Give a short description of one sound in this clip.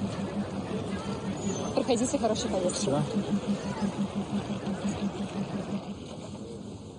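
A crowd chatters nearby.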